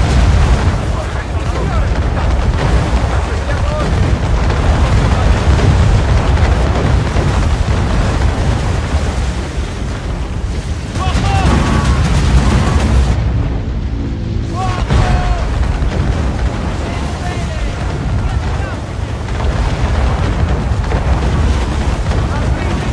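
Cannons boom repeatedly in heavy fire.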